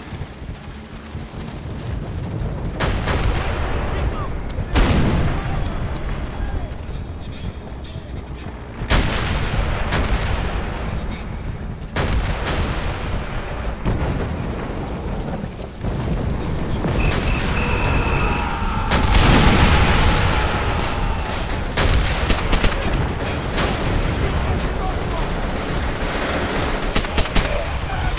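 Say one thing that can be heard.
Rifles fire in sharp, rapid shots.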